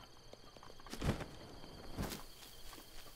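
A figure lands with a thud on the ground.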